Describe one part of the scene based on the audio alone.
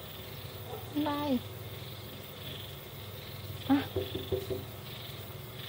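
A hen clucks and croons close by.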